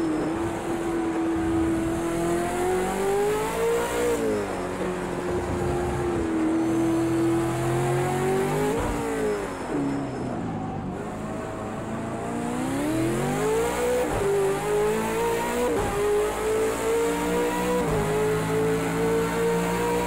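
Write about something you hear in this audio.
A racing car engine roars, rising in pitch as it revs and dropping sharply with each gear change.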